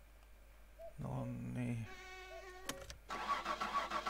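A car engine cranks with a starter motor.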